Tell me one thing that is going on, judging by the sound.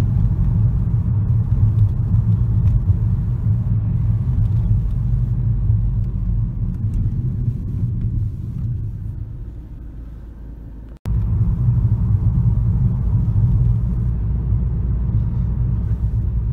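A car engine hums low and steady from inside the cabin.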